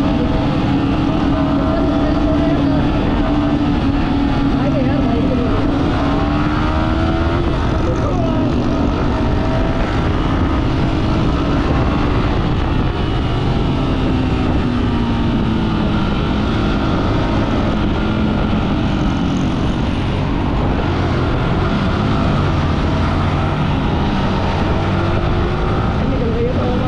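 A motorcycle engine hums steadily up close, rising and falling in pitch as it speeds up and slows.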